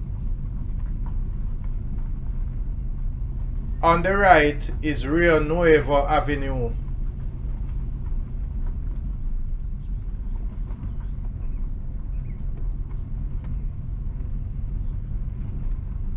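A car engine hums low and steady while driving slowly.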